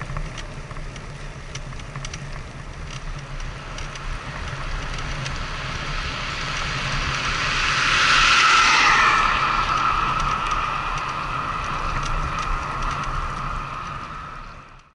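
Wind rumbles against a moving vehicle.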